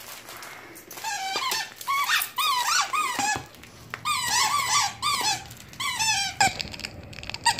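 A squeaky toy squeals over and over as a dog chews it.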